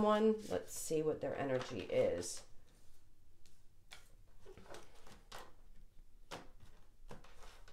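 Playing cards rustle and flick as they are shuffled by hand.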